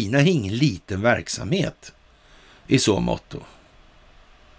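A middle-aged man speaks calmly and clearly into a close microphone.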